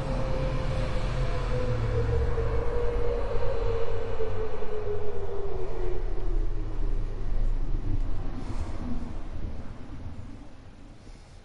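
A spaceship engine roars past with a falling hum and fades away.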